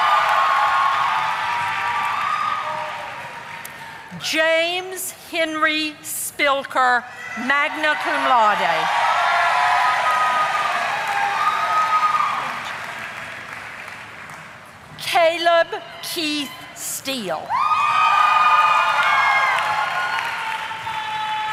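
An audience applauds and cheers in a large echoing hall.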